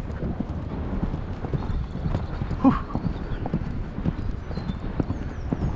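A dog's paws thud quickly on grass as it runs.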